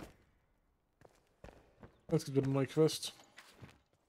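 Footsteps thud across a floor.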